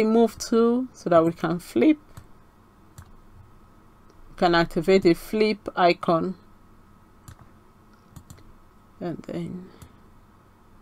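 A woman speaks calmly and closely into a microphone, with pauses.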